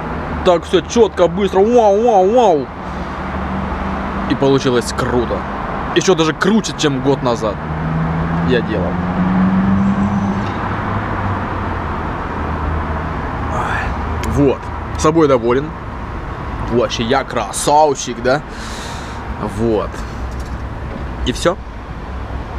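A young man talks animatedly close by.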